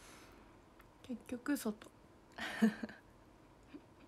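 A young woman speaks softly and briefly, very close by.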